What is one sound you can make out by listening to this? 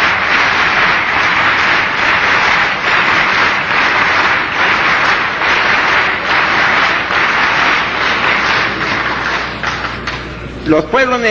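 A large crowd applauds loudly in a big hall.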